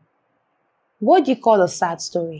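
A woman speaks clearly and close by, asking a question.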